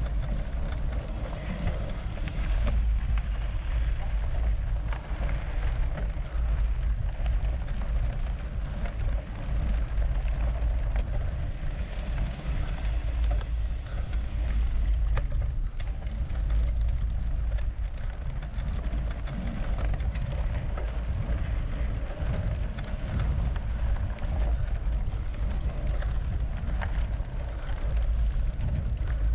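A bicycle chain clicks and whirs as pedals turn.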